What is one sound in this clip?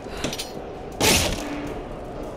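A heavy wooden chest lid is pried open with a sharp clank.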